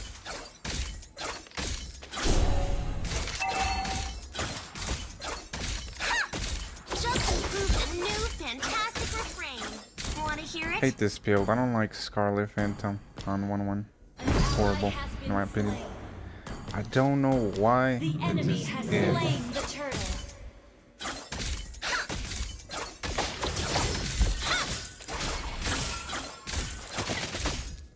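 Video game fight effects burst and clash in quick succession.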